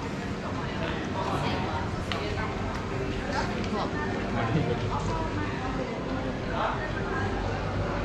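Men and women chatter nearby as they walk past.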